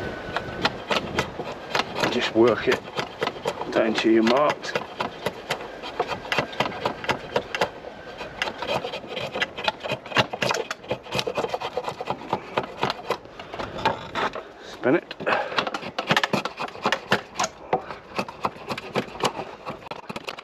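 A drawknife shaves wood in quick, repeated rasping strokes.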